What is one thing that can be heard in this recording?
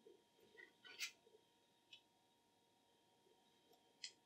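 Wire cutters snip through a thin wire.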